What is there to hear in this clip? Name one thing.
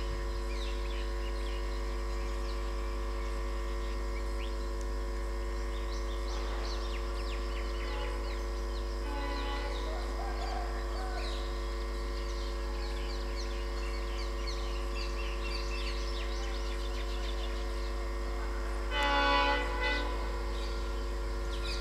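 A train rolls slowly along the tracks with a steady hum.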